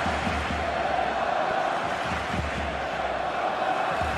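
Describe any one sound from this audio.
A large crowd roars and chants steadily in a stadium.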